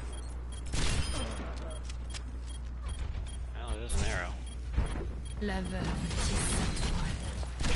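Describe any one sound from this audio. A gun fires in quick bursts of shots.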